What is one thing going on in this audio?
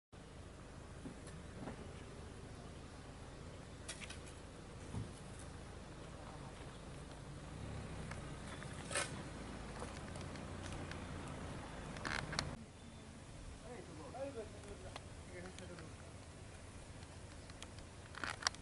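Loose soil crumbles and trickles down a slope.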